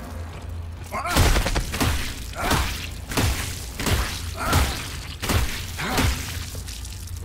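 Heavy boots stomp again and again on a body with wet, crunching squelches.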